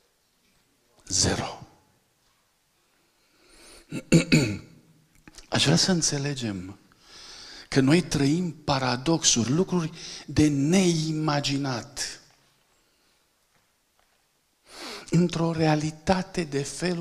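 A middle-aged man speaks with animation into a microphone, pausing now and then.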